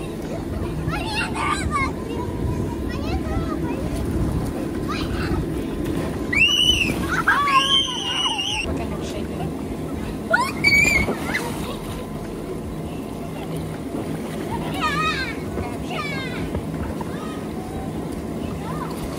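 Water splashes as children move in a pool.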